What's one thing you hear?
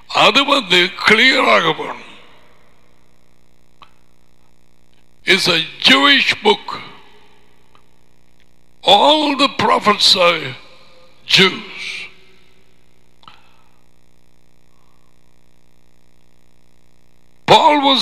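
A man speaks emphatically through a close microphone, in bursts with pauses.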